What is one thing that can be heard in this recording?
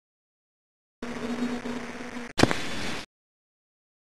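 A match strikes and flares.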